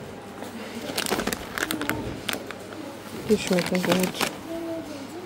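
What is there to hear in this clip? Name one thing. A plastic snack bag crinkles in a hand.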